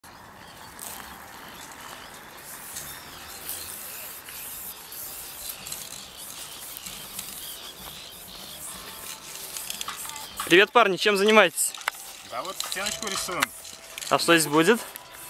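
Spray paint hisses from an aerosol can in short bursts.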